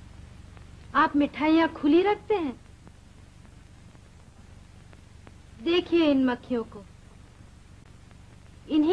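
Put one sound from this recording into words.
A young woman sings nearby in short melodic phrases.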